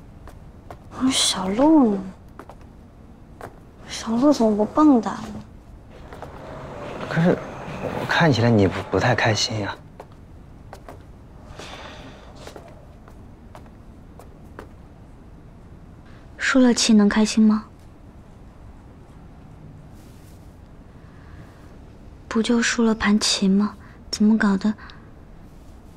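A young woman speaks softly and sadly close by.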